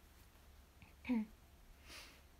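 A young woman speaks briefly and softly, close to a microphone.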